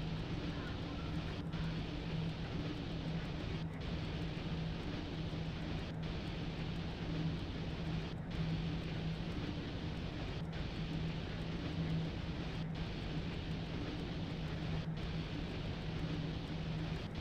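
An electric locomotive's motors hum steadily.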